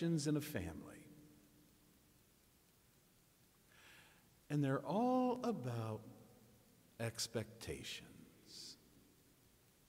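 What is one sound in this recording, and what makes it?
An elderly man speaks slowly and calmly through a microphone, with long pauses, in a large echoing room.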